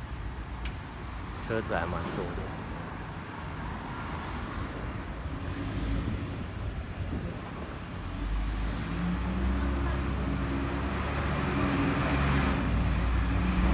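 A bus engine hums as it drives past.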